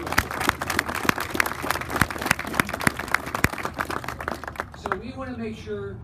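A crowd applauds loudly close by.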